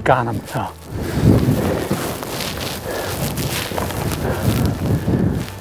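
Dry grass rustles and crunches as a man crawls through it.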